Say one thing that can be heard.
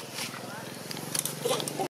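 Dry leaves rustle as small monkeys scamper over them.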